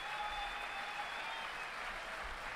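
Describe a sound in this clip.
A man sings a held note into a microphone in a large hall.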